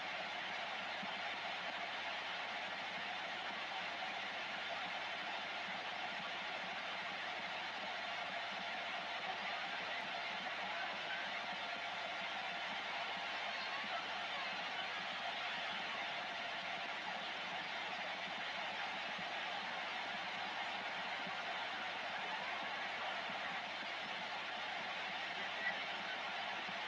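Static hisses steadily from a radio receiver's loudspeaker.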